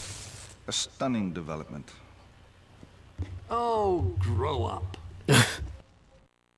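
An older man speaks with a scornful tone.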